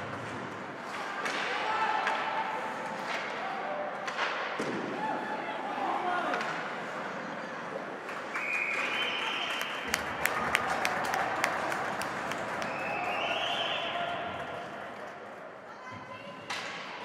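A crowd of spectators shouts and cheers in an echoing rink.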